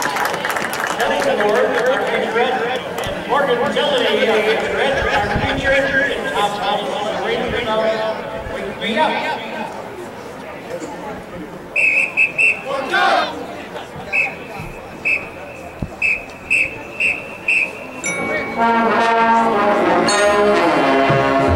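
A marching band plays brass and percussion music outdoors.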